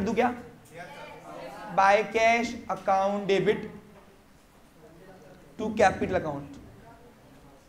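A young man speaks calmly into a close microphone, in short phrases.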